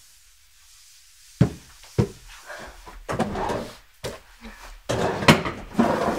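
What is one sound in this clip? A cloth rubs across a wooden desk.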